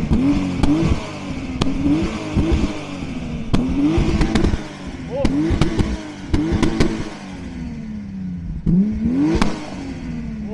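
A car exhaust pops and crackles.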